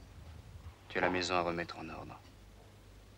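A young man speaks calmly, close by.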